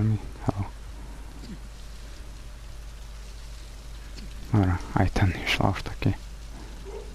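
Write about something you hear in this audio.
A young woman speaks in a strained, breathless voice nearby.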